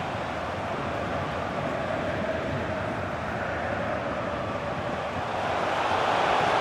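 A large stadium crowd roars steadily and swells louder toward the end.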